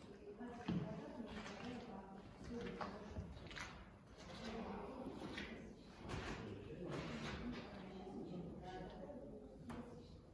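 Visitors chatter in a large echoing hall.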